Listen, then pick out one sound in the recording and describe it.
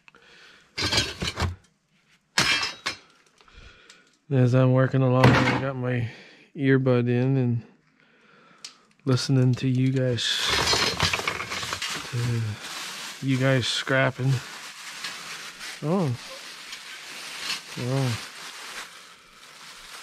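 Metal and plastic junk clatters and rustles as a person rummages through it.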